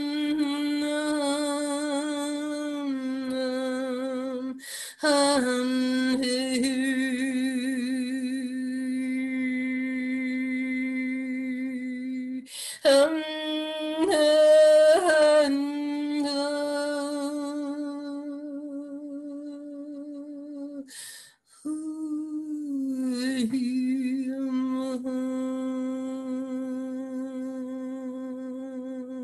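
A middle-aged woman sings long, held notes close to a microphone.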